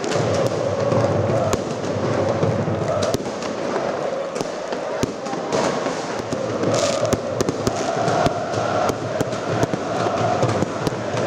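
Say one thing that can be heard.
A large crowd of football fans chants in unison in an open stadium.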